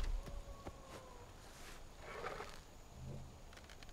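A wooden bow creaks as it is drawn.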